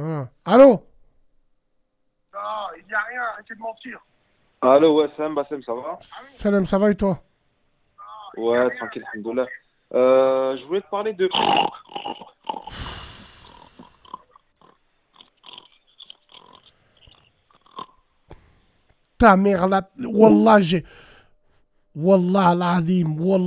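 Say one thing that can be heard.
A man speaks with animation into a close microphone, with pauses.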